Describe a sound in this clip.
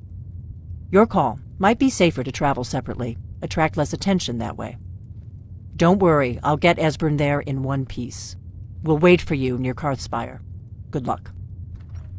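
A woman speaks calmly and firmly, close by.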